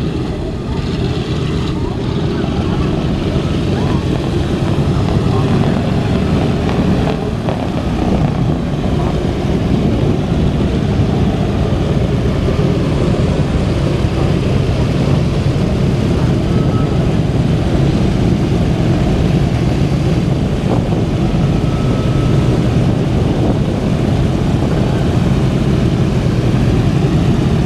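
Strong wind buffets loudly across an open outdoor space.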